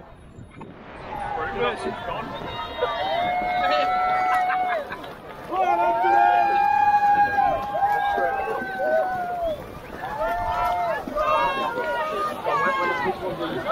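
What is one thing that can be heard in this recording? A large crowd cheers and whoops loudly outdoors.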